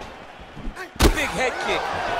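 A kick lands with a sharp thud.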